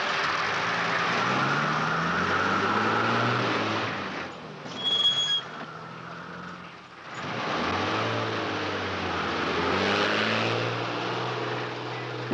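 A lorry engine revs and rises in pitch as it pulls away through its gears.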